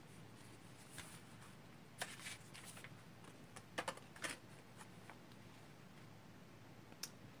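Playing cards rustle and tap as they are handled.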